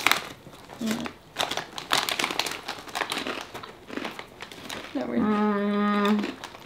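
A young woman crunches on chips.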